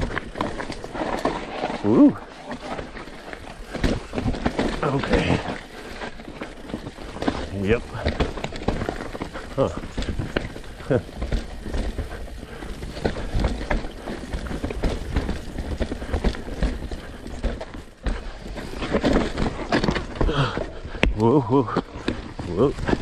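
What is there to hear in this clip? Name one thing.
Bicycle tyres roll and crunch over a dirt and rock trail.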